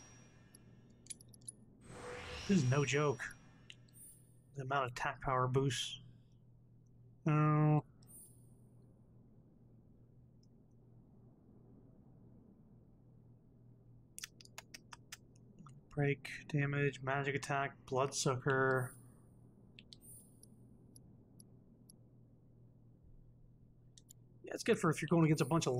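Short electronic menu blips sound now and then.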